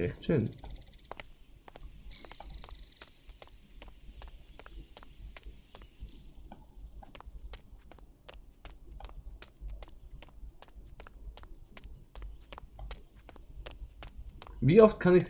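Quick footsteps tap steadily on a hard floor.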